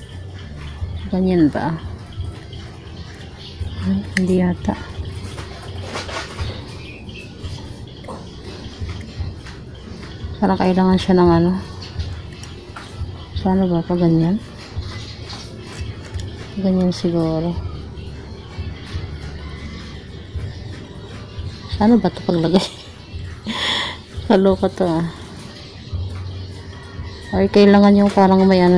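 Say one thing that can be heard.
Hands handle a small plastic phone, with light clicks and rubbing.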